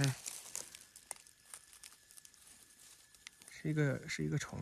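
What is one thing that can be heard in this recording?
Dry soil and plant debris crumble and crackle between fingers.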